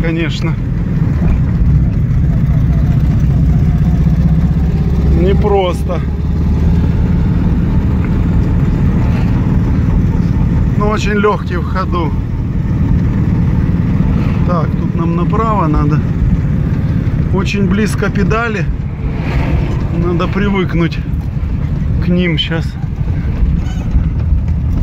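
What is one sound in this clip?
Tyres roll over the road surface.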